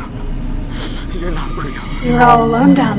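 A young woman speaks in a strained, shaky voice.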